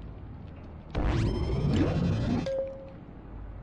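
A game menu opens with a short burst of sound.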